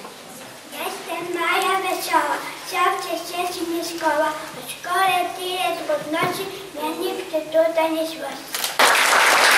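A young girl speaks clearly and slowly, reciting.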